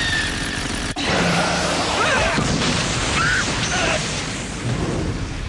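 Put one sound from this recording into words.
A large monster roars.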